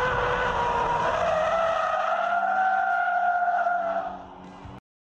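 Tyres squeal on asphalt as a car drifts.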